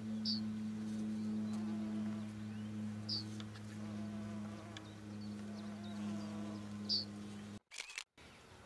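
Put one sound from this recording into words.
A honeybee buzzes close by.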